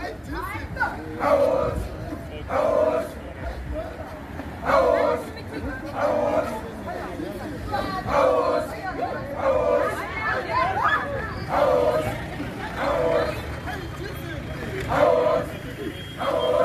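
A crowd of young men and women chants loudly and rhythmically outdoors.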